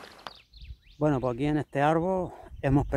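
A middle-aged man speaks close up with animation.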